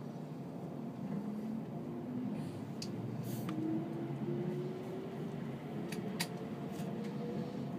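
A train's motor whines and rises in pitch as another train passes close by.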